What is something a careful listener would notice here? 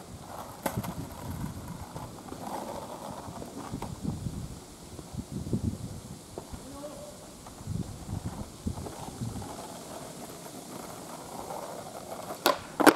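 Skateboard wheels rumble over rough asphalt, rolling past and coming back.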